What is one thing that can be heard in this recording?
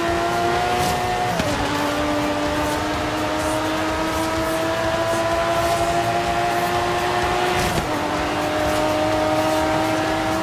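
Tyres hiss on wet tarmac.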